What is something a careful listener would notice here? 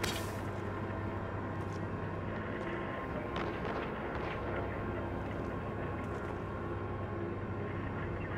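Footsteps crunch over rubble and broken glass.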